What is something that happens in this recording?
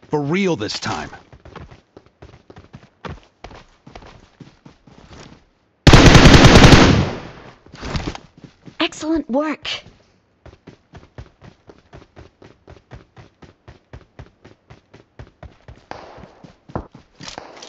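Footsteps run quickly over grass and pavement.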